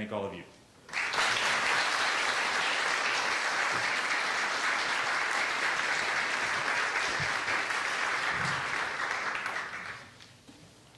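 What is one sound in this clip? An audience applauds steadily, then the clapping dies away.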